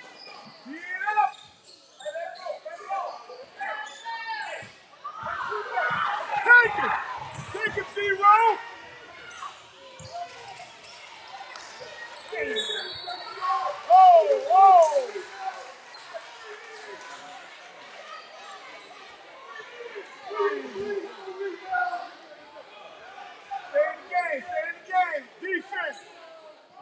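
A crowd murmurs and cheers in an echoing gym.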